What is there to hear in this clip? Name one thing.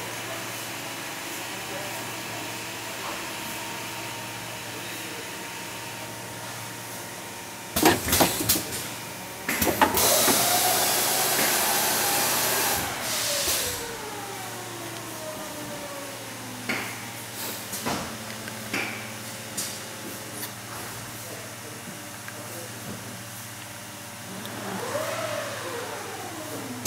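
An assembly machine hums steadily.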